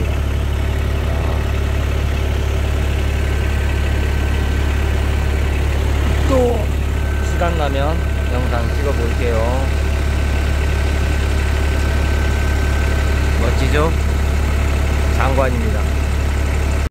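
A small engine drones steadily close by.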